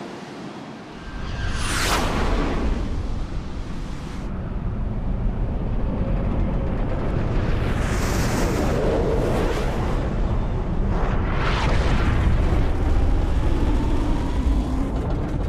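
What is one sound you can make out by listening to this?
Heavy engines roar low and steadily.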